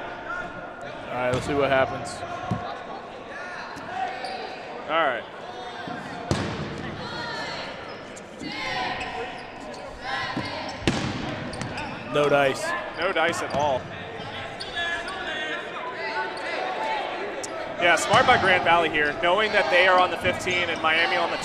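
Young men shout and cheer across a large echoing gym.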